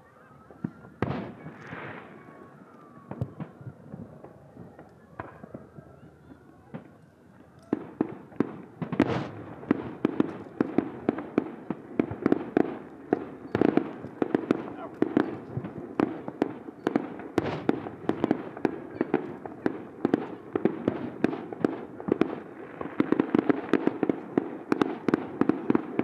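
Fireworks burst with sharp bangs far off over water.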